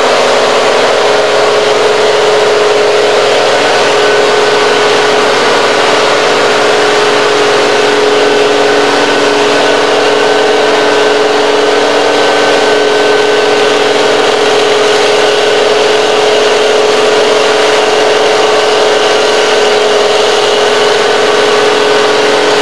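A mulching head grinds and chews through brush.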